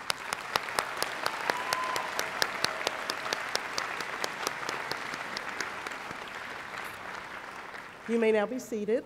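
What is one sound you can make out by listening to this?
A large crowd applauds in a big echoing hall.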